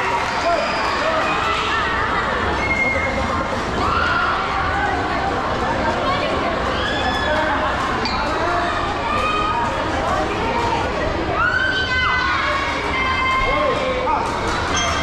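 A large crowd of children and adults chatters loudly under an echoing roof.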